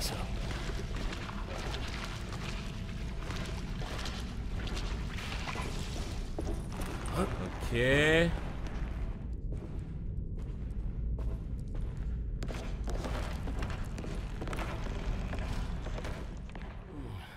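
Footsteps crunch slowly on stone and gravel.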